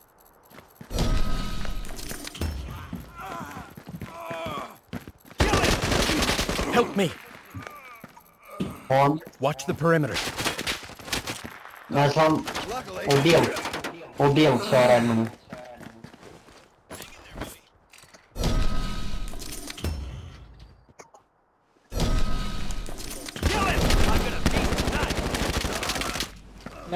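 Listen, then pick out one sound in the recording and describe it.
Rapid rifle fire rattles in loud bursts.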